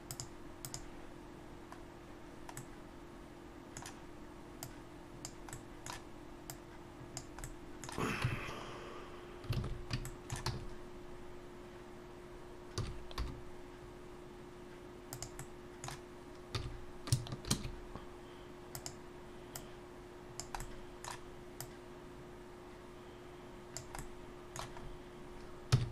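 A computer mouse clicks now and then, close by.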